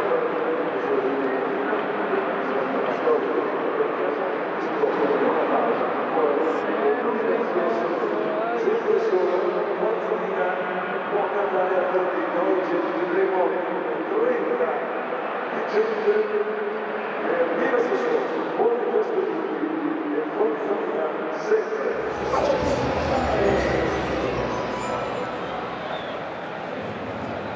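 A large stadium crowd chants and sings loudly outdoors.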